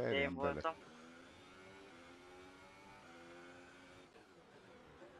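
A racing car engine whines at high revs, its pitch rising and falling.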